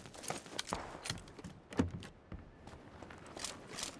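A wooden door creaks open with a thud.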